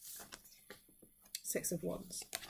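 Playing cards shuffle and flick.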